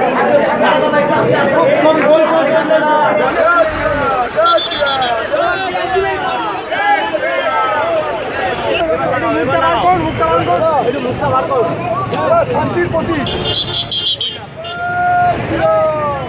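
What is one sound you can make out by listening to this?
A crowd of men shout and chant loudly nearby.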